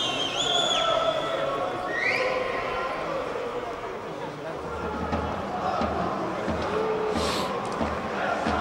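A stadium crowd murmurs and chatters throughout.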